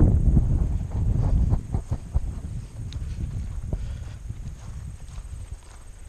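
A man talks close by, outdoors.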